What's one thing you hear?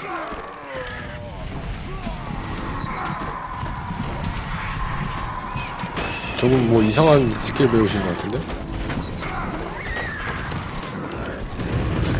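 Fiery blasts and spell effects crackle and boom in a busy fight.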